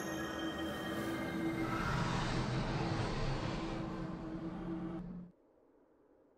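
A shimmering magical hum swells and then fades away.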